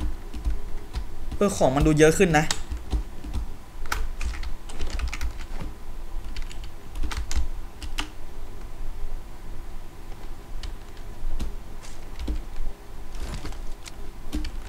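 Footsteps thud quickly on hard floors.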